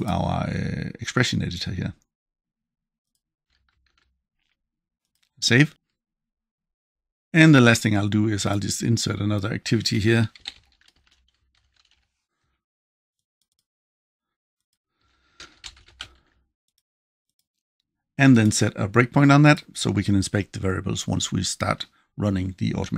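A middle-aged man talks calmly and close to a microphone, in bursts with pauses.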